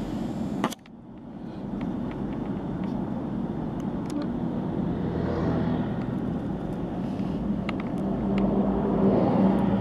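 Traffic rumbles nearby.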